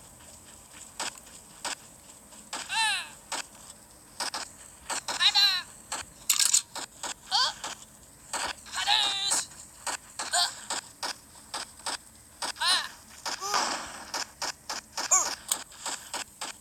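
Toy guns fire in short, sharp bursts.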